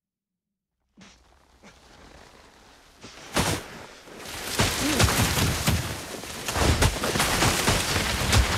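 Strong wind roars and buffets in gusts, growing louder.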